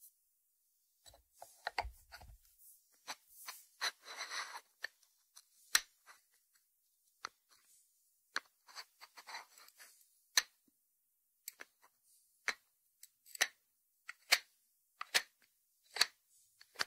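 Fingernails tap on a ceramic dish and its lid.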